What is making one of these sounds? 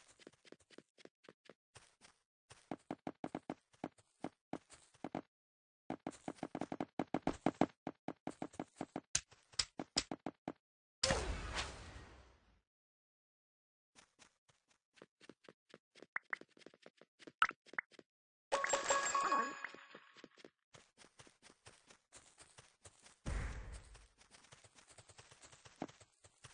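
Blocks are placed with rapid, soft clicking taps.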